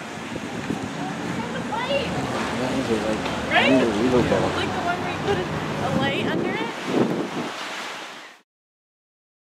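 A man answers close by, laughing.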